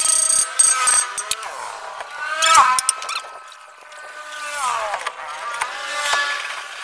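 Metal tools clink and scrape against the ground.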